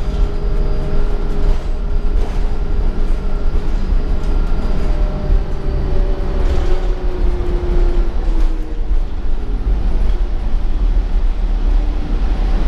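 A bus engine rumbles low and steady while driving.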